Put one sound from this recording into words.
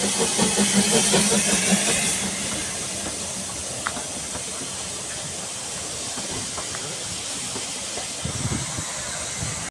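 Carriage wheels rumble and clack over rail joints.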